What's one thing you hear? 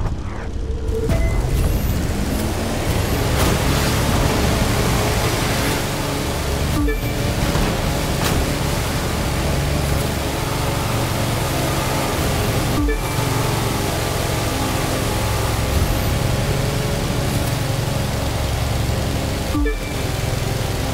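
Water rushes and hisses against a speeding boat's hull.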